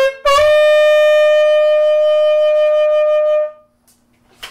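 A saxophone holds a long, loud note, close by, then stops.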